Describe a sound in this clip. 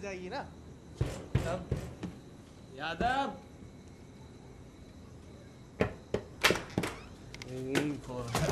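Footsteps scuff across a hard floor.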